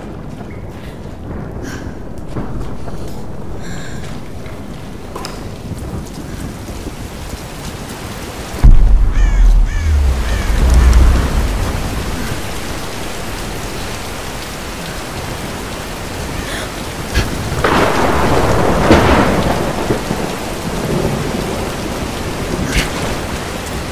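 A torch flame crackles steadily.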